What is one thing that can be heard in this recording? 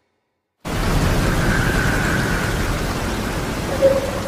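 A young man groans in anguish close by.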